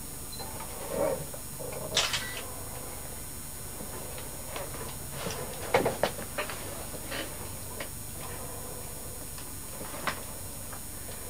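Diving gear clicks and knocks as it is handled.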